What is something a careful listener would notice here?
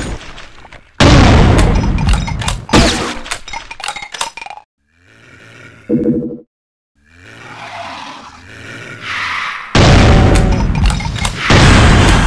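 A shotgun fires single loud blasts.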